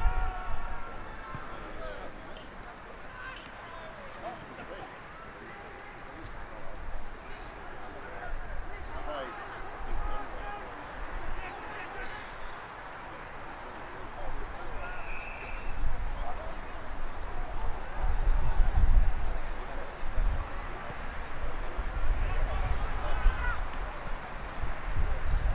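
Men shout and call to each other from a distance.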